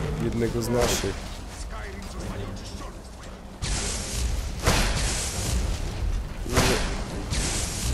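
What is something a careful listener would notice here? A man talks into a microphone with animation.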